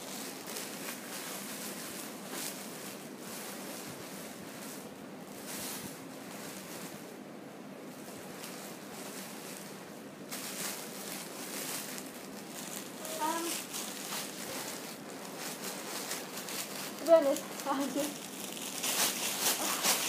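Plastic sheeting rustles and crinkles as it is handled.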